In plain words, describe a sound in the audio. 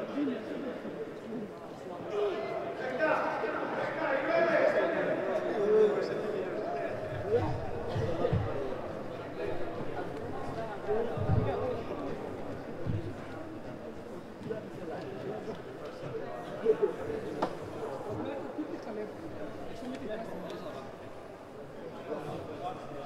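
Men's voices call out across a large echoing hall.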